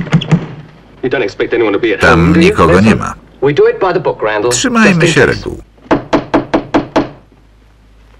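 An elderly man talks close by.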